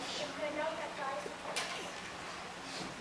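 A girl speaks into a microphone.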